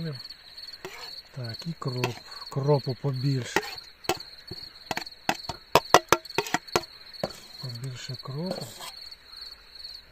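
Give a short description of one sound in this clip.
A spoon scrapes and taps against a plate and a metal pot.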